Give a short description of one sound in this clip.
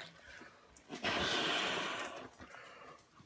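A man blows air into a rubber balloon.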